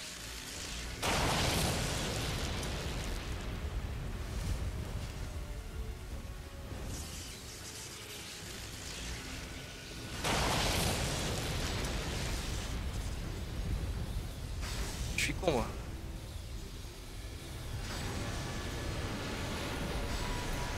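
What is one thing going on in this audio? Lightning magic crackles and bursts.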